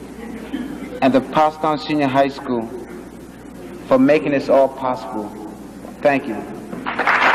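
A young man speaks with feeling into a microphone, heard through a loudspeaker in a large hall.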